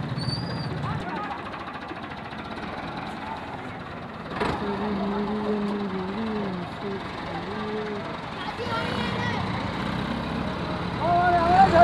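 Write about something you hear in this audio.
A tractor engine rumbles and strains under a heavy load.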